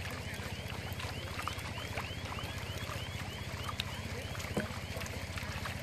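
Water sloshes and splashes as a person wades through a pond.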